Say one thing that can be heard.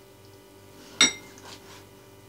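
A knife taps sharply against a cutting board.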